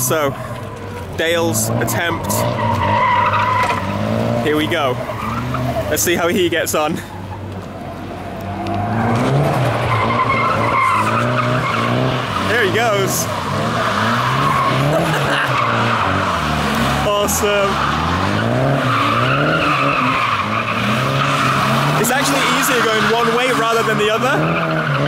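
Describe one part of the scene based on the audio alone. A car engine revs hard and rises and falls in pitch.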